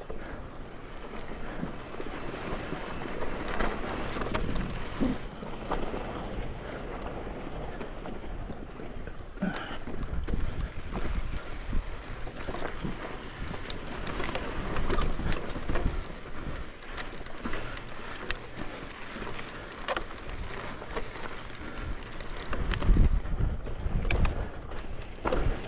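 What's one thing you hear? Bicycle tyres crunch and roll over rocky dirt.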